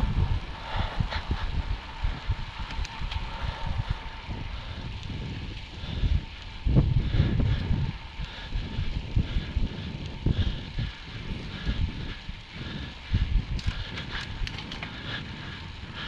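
Bicycle tyres hum on the road surface.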